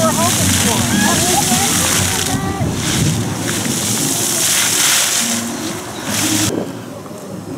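Fountain jets splash and patter onto wet pavement.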